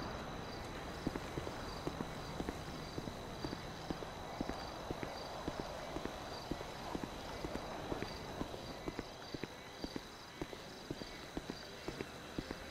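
Footsteps walk across hard ground.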